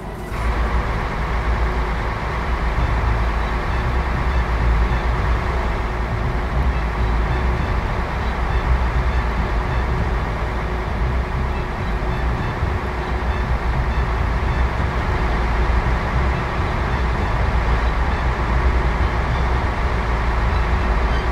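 Tyres hum on asphalt.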